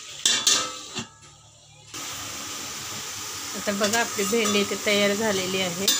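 A metal lid clinks against a pan.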